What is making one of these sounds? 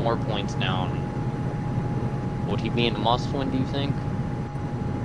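A young man speaks briefly into a microphone, close by.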